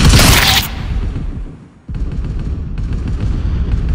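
A rifle is reloaded with a metallic clack.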